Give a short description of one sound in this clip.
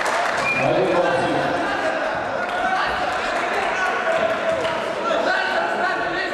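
A large crowd chatters and shouts in an echoing hall.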